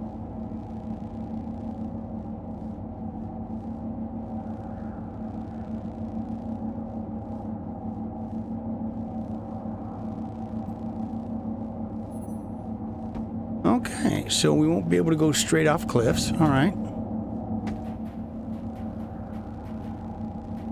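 A hovering drone hums steadily.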